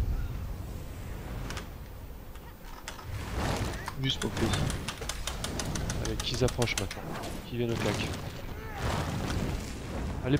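Magic spells whoosh and burst in rapid succession.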